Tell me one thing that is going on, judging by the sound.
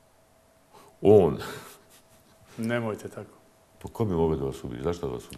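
A middle-aged man answers cheerfully, close to a microphone.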